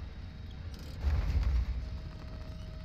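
A truck tips over and thuds onto the ground.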